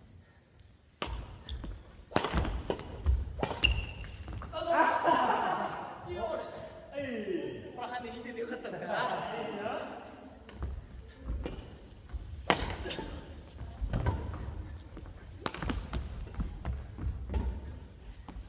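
Sneakers squeak and thud on a hard gym floor.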